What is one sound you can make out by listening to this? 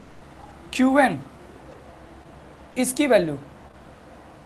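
A young man speaks calmly and clearly in short bursts.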